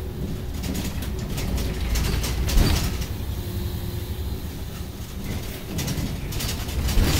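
The bus rattles and creaks as it rolls along the street.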